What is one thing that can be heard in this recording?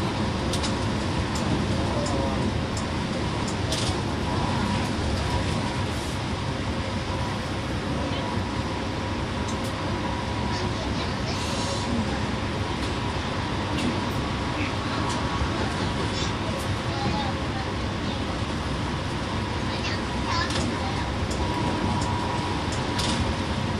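The bus interior rattles and clicks now and then.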